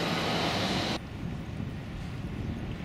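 A bicycle rolls by on a paved path.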